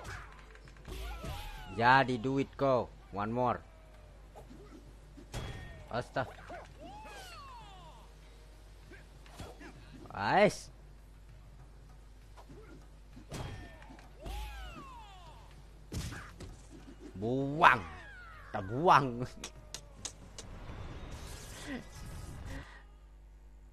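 A young man talks and exclaims with animation into a close microphone.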